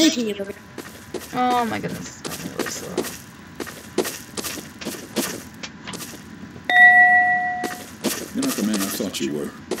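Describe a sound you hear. Quick footsteps patter across a floor.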